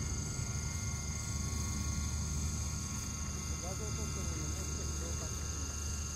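A model jet engine whines steadily overhead.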